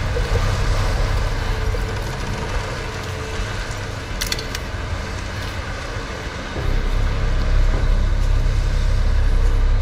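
Footsteps crunch over rubble.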